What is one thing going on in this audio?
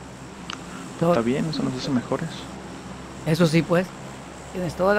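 A young man speaks casually into a close microphone, in short bursts.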